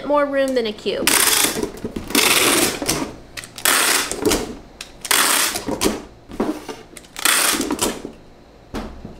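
Packing tape screeches as it is pulled from a dispenser.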